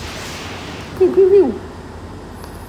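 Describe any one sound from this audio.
A short, bright electronic chime rings out with a burst of sparkle.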